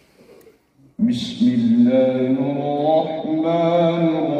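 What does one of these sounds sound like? A young man chants in a drawn-out, melodic voice into a microphone, heard through loudspeakers.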